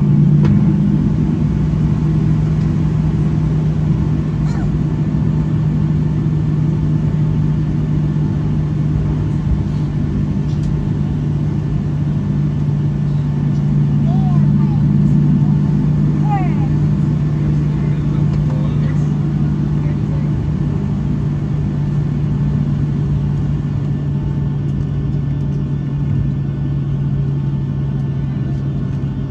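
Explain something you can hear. Jet engines hum steadily and deeply inside an aircraft cabin as it taxis.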